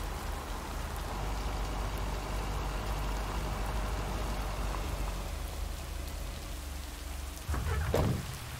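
A vehicle engine rumbles low and steady as it drives along.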